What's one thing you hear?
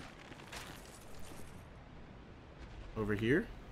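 Footsteps clank on ladder rungs as a figure climbs.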